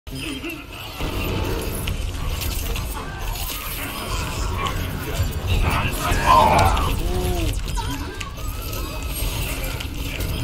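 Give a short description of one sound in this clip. Video game explosions and impacts rumble.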